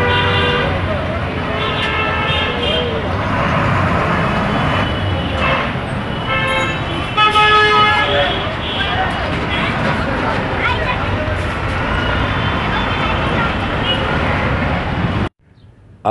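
Heavy street traffic rumbles steadily nearby.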